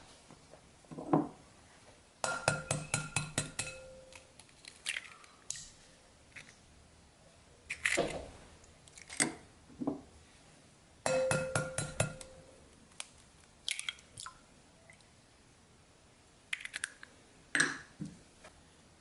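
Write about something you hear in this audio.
An eggshell cracks against the rim of a glass bowl.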